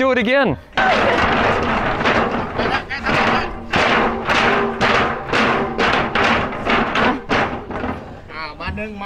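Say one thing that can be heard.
Wooden sticks rattle inside a metal drum.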